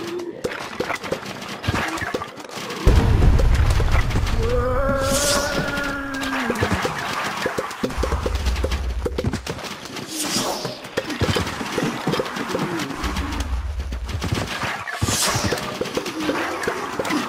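Plants pop as they shoot peas.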